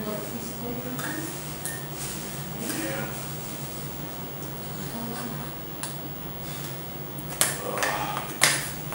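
A metal spoon clinks and scrapes against a metal pot.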